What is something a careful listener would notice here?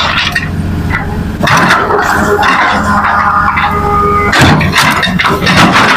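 A diesel hydraulic excavator works under load.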